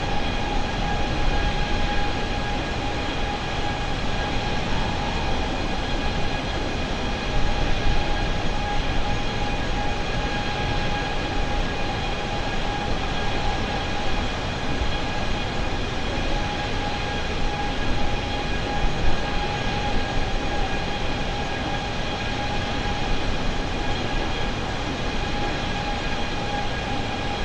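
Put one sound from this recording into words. Jet engines roar in a steady, droning hum.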